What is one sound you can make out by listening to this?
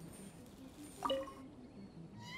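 A short bright chime rings as an item is picked up.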